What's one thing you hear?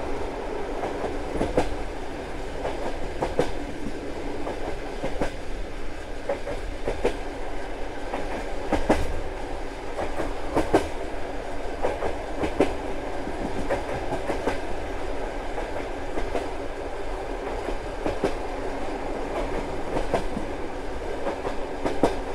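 Train wheels clack over rail joints at an uneven pace.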